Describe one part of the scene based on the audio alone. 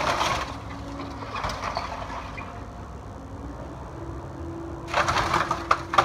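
Debris clatters and crashes down.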